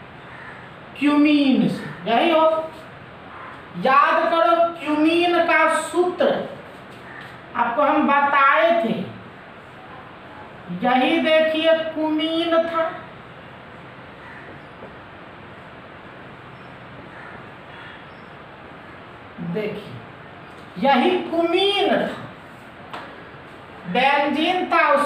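A man speaks calmly and clearly, as if lecturing, close by.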